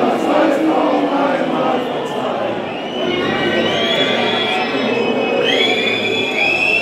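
A large crowd of fans sings and chants loudly in an open stadium.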